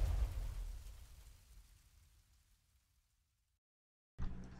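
A deep explosion booms and slowly rumbles away.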